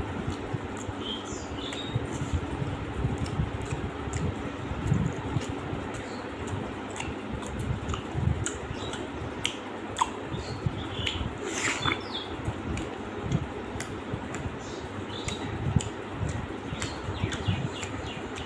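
A young man chews food noisily, close to a microphone.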